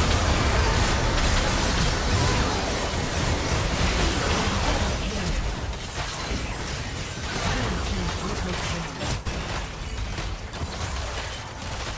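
Magic blasts and sword strikes clash in a fantasy battle game.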